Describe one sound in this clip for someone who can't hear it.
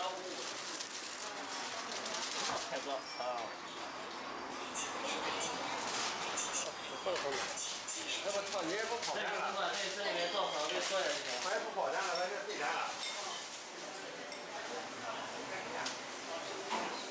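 Men and women chatter nearby in a busy, crowded room.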